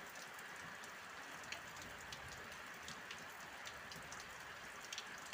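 Steady rain falls outdoors.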